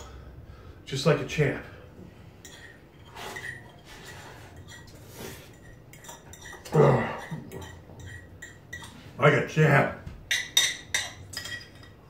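A man slurps food from a spoon.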